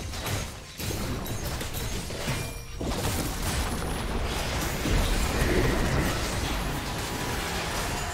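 Game spell effects clash and whoosh in a busy fight.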